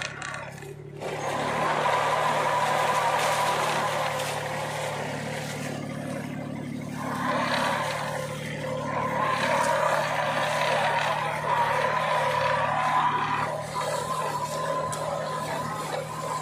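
A plough blade scrapes and churns through dry soil.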